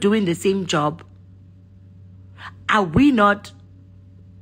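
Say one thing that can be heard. A woman speaks with animation close to a phone microphone.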